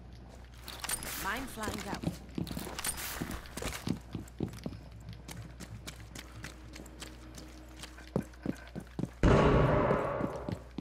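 Footsteps thud quickly across a hard floor.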